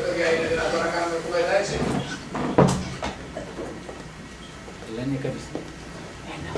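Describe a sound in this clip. A man speaks through a microphone, his voice carrying in a large room.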